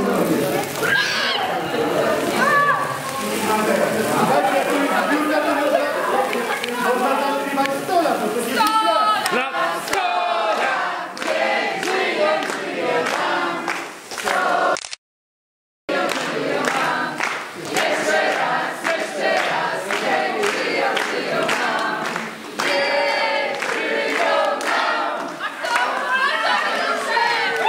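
A crowd of men and women sing together loudly and cheerfully.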